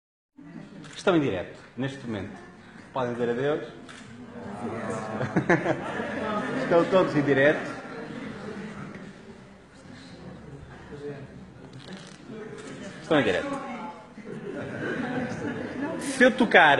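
A large audience chatters and murmurs in an echoing hall.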